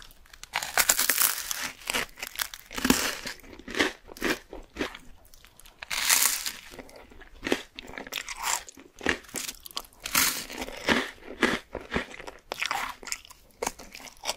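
Crispy toast crunches as a woman bites into it close to a microphone.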